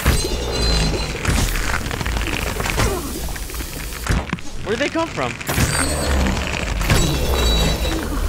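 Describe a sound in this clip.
Skeleton bones clatter and rattle.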